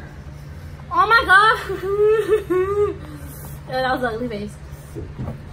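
A young woman whines and groans loudly.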